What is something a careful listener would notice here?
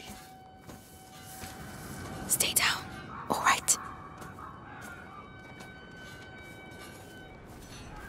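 Tall dry grass rustles as someone moves through it.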